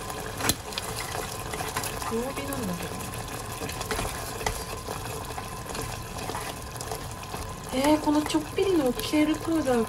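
Chopsticks stir and scrape in a pot of stew.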